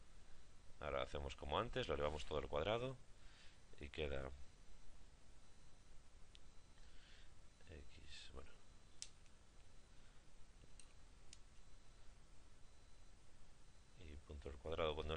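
A young man speaks calmly into a close microphone, with pauses.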